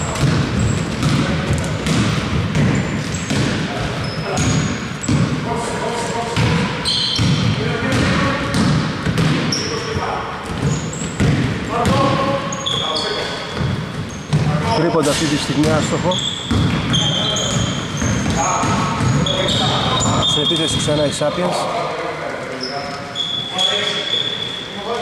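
Men shout and call out to one another in a large echoing hall.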